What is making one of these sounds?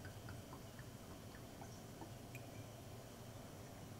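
Olive oil trickles softly into a spoon.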